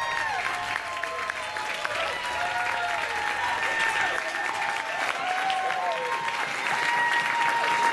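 People in an audience cheer and whoop.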